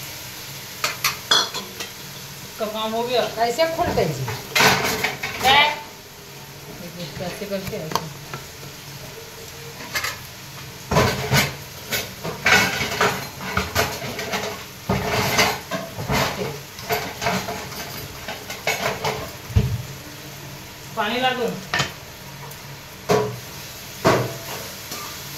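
A metal jar and lid clink and knock.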